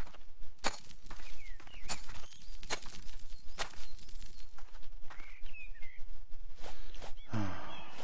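A rake scrapes across loose soil in short strokes.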